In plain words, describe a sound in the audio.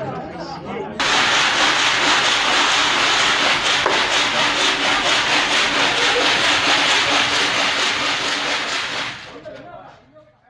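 Dry grain rustles and pours as it is scooped between basins.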